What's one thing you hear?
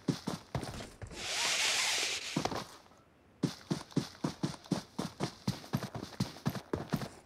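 Footsteps thud quickly and steadily on the ground.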